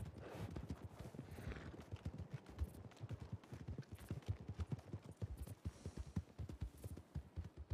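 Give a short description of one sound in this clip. Horse hooves thud steadily on soft ground.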